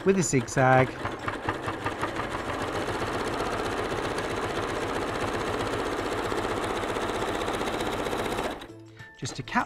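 A sewing machine hums steadily as it stitches fabric.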